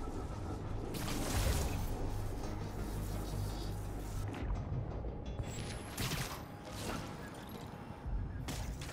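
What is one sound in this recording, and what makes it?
Wind whooshes loudly during a fast swing through the air.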